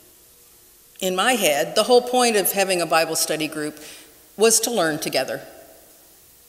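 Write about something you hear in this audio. A middle-aged woman speaks calmly into a microphone in an echoing hall.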